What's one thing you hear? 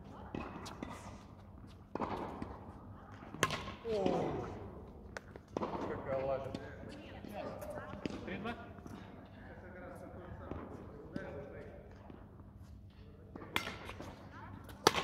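Badminton rackets strike a shuttlecock with sharp pops, back and forth, in a large echoing hall.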